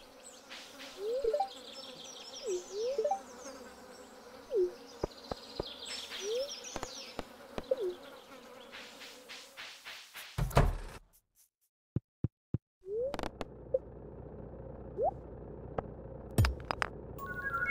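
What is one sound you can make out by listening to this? Short game blips sound as menu options are picked.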